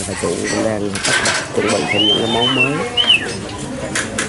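People chatter nearby.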